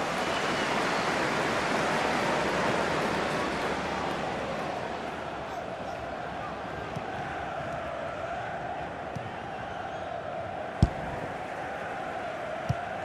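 A large stadium crowd roars steadily, louder at first and then easing off.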